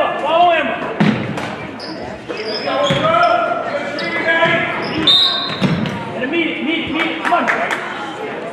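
A basketball thumps as it bounces on the floor.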